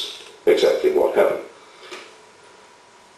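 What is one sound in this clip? A man speaks loudly through a microphone over loudspeakers in a large hall.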